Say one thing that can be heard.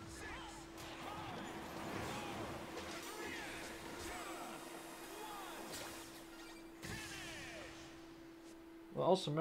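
Fast whooshing and chiming sound effects play throughout.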